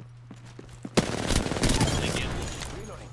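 Gunfire rattles in a quick burst.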